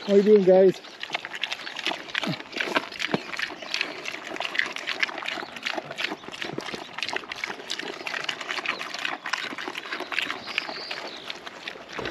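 Pigs munch and slurp feed from a bowl.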